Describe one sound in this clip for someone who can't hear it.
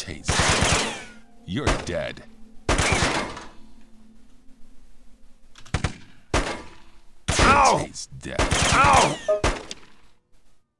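Guns fire in rapid bursts with ringing echoes.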